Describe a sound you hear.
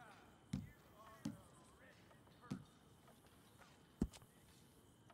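Soft menu clicks thud several times.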